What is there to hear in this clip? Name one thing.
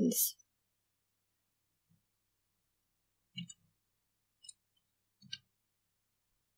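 A young woman speaks softly in short bursts, close by.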